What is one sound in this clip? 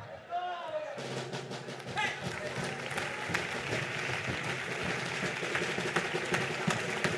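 Feet stamp and shuffle on a wooden stage.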